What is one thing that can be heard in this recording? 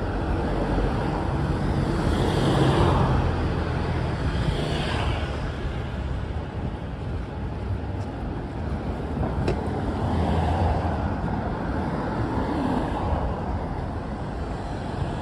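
Cars drive past on the street.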